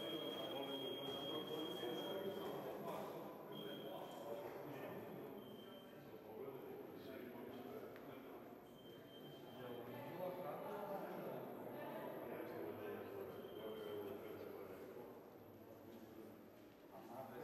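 A crowd of men talks and murmurs in a large echoing hall.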